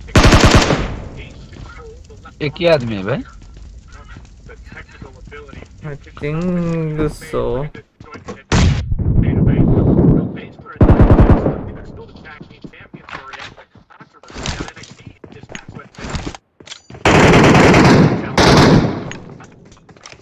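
Loud gunshots fire in short bursts.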